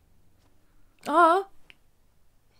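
A young woman lets out a surprised, drawn-out exclamation close to a microphone.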